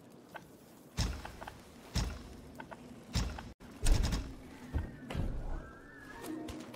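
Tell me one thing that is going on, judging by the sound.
Deep soft whooshing thuds sound as game menu options are chosen.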